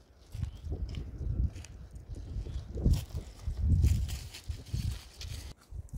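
Footsteps crunch on dry leaves and grass outdoors.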